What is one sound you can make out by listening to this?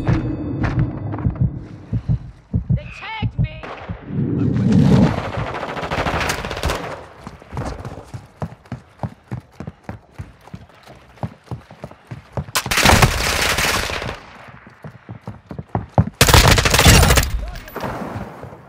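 Gunfire rattles in short, loud bursts.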